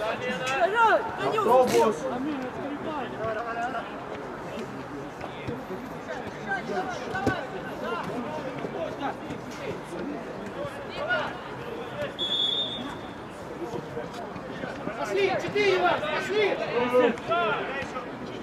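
Men shout to each other across an open pitch outdoors.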